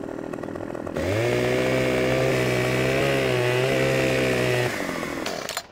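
A chainsaw engine runs with a steady buzzing drone.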